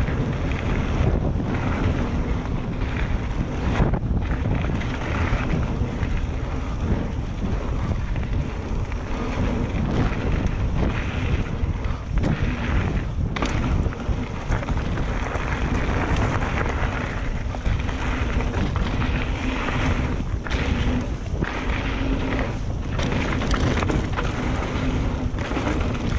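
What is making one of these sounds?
Bicycle tyres crunch and rattle over a dirt and gravel trail.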